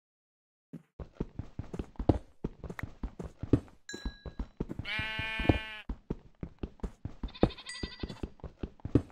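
A pickaxe strikes stone in quick, repeated blows.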